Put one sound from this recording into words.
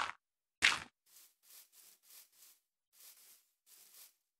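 Soft footsteps patter on grass.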